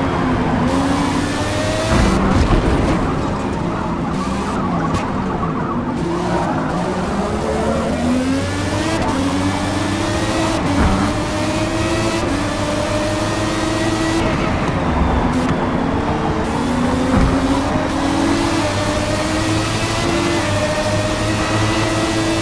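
Tyres hiss on a wet track.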